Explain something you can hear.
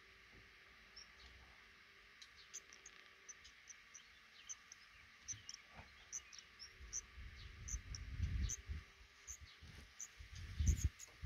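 Baby birds cheep softly and repeatedly from a nest close by.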